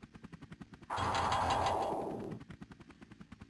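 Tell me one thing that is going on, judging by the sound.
A glowing orb gives a loud warping whoosh.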